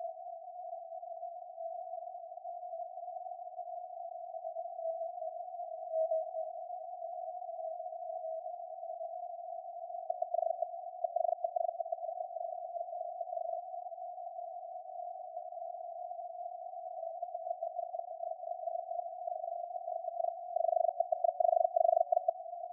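A radio receiver plays a narrow, buzzing tone of coded signals that flickers and pulses throughout.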